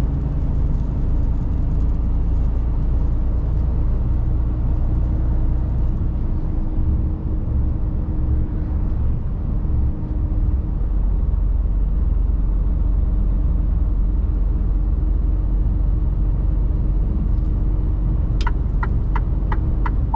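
A truck engine hums steadily with a low rumble inside the cab.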